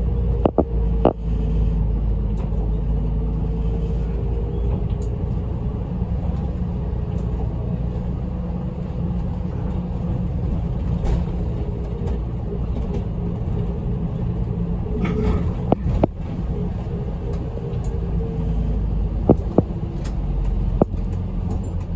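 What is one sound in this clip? The bus body rattles and knocks over the road.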